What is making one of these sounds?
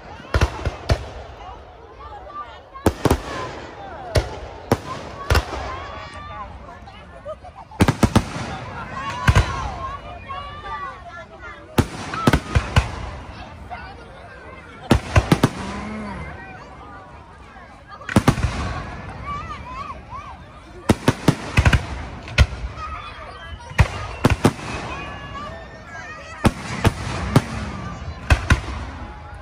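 Fireworks burst with loud booms and sharp bangs, again and again.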